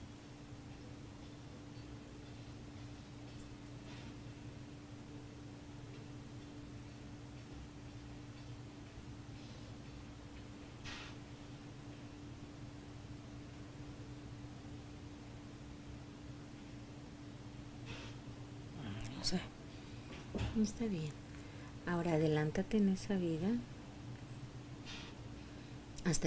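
A woman snores softly.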